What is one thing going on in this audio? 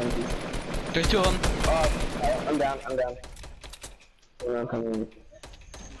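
A rifle fires several shots.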